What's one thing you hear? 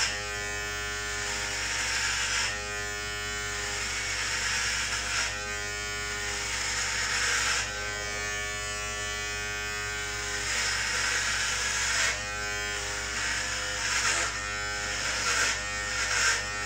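Hair clippers rasp through short hair.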